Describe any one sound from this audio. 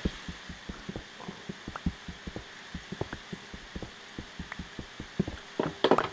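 Footsteps tap quickly and steadily on stone.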